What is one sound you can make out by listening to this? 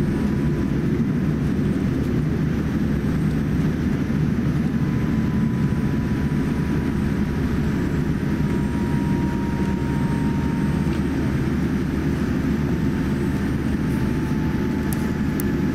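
Jet engines hum steadily inside an airliner cabin.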